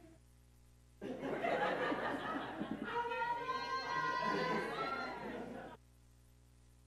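A crowd of men and women chatter and laugh nearby.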